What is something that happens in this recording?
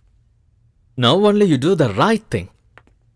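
A woman speaks with feeling.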